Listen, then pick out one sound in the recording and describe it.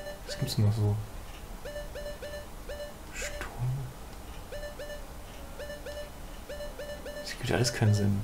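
Short electronic blips tick as a game menu cursor moves.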